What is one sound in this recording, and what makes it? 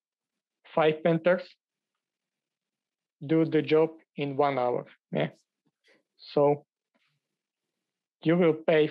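A man speaks calmly through a microphone over an online call, in short phrases with pauses.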